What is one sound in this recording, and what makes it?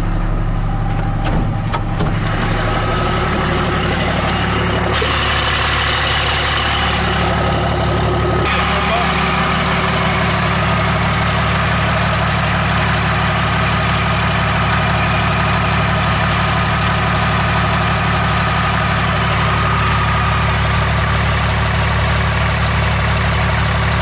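A diesel engine idles steadily and loudly.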